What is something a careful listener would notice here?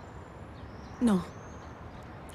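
A younger woman speaks briefly, close by.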